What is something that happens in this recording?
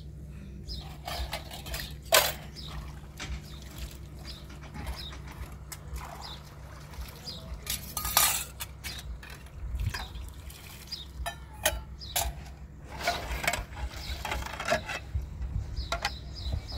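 Metal dishes clink and clatter as they are washed.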